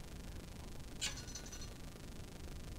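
A guitar string twangs briefly as it is pulled.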